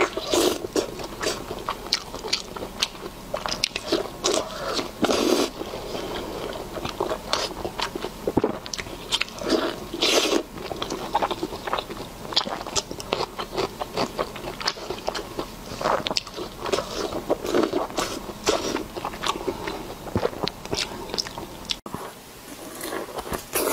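A young woman chews and slurps food noisily close to a microphone.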